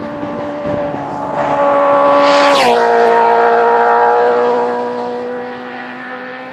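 A sport motorcycle speeds past at high revs, its engine note dropping in pitch as it goes by.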